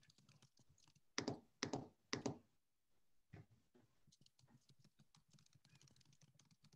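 Keys clatter quickly on a computer keyboard.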